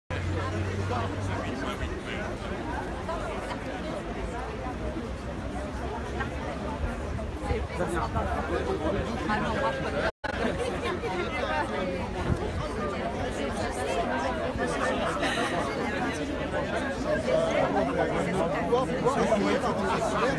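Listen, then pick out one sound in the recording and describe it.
A crowd of men and women talks and murmurs all around, close by, outdoors.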